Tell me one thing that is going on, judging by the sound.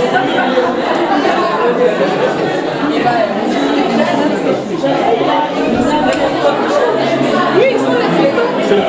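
A crowd of men and women chatter close by in a room.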